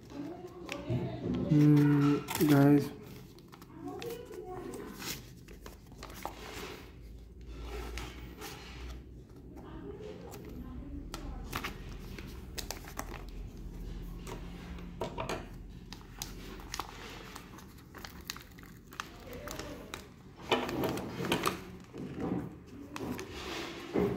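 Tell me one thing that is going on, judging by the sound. Scissors snip through a plastic mailer.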